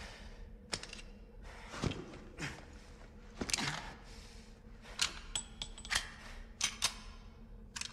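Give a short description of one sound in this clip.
A gun's metal parts click and clack.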